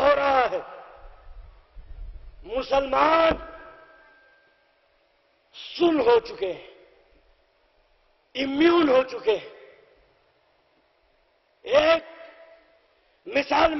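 A man speaks forcefully in short bursts through a microphone and loudspeakers, with echo trailing each phrase.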